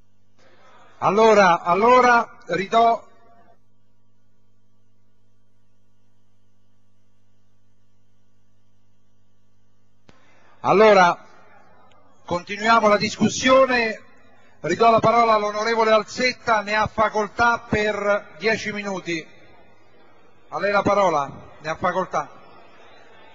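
An elderly man speaks calmly into a handheld microphone, in pauses.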